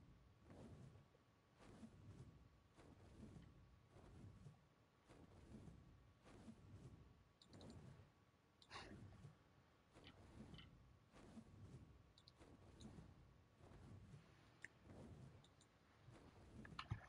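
Large wings beat with deep, regular whooshing flaps.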